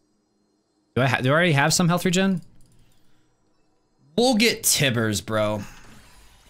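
A young man speaks with animation, close to a microphone.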